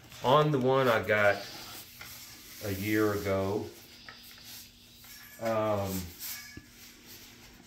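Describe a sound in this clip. Foam packing creaks and rubs as parts are lifted out.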